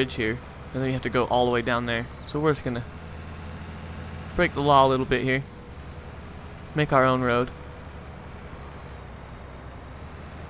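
A tractor engine hums steadily while pulling a trailer.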